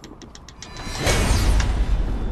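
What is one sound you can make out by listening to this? A fiery blast bursts with a loud roar.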